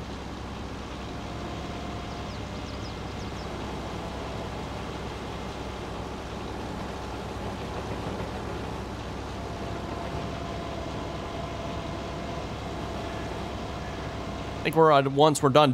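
A heavy excavator engine rumbles steadily.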